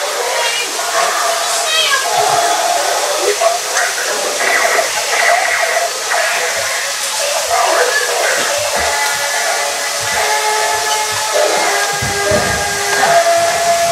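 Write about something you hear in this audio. Toy robots whir and click as they walk on a hard floor.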